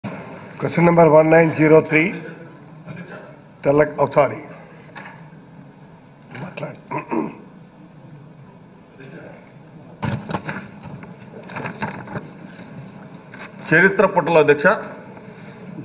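A middle-aged man speaks loudly through a microphone, in short bursts.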